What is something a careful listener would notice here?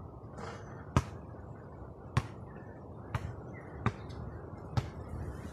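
A basketball bounces on hard pavement at a steady pace.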